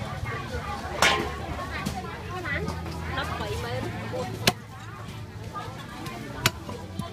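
A cleaver chops through fish onto a wooden chopping block.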